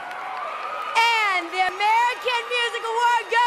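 A young woman speaks excitedly into a microphone over loudspeakers.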